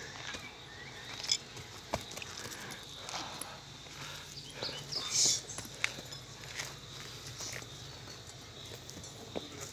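Footsteps scuff and crunch on rocky, grassy ground outdoors.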